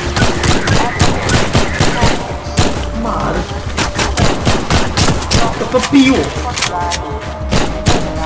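A pistol fires shot after shot, sharp and echoing.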